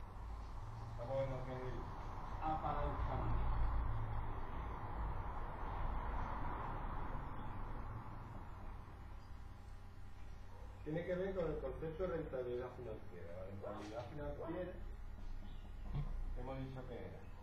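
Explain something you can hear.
A man speaks calmly nearby, as if explaining.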